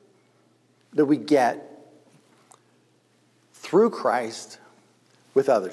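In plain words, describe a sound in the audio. A middle-aged man speaks calmly and with expression, close to a lapel microphone.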